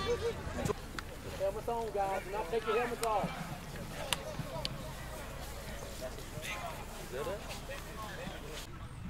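A group of young men chatter and call out nearby.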